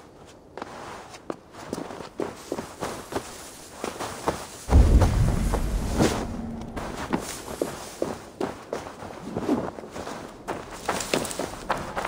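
Footsteps crunch on dirt and brush.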